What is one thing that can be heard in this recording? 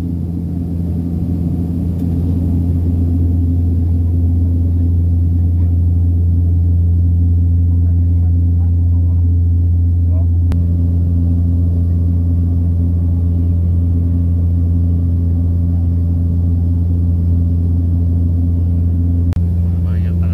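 Wind rushes past the aircraft in flight.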